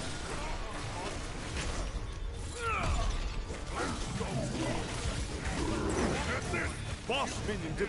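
Magic spells whoosh and crackle in a game.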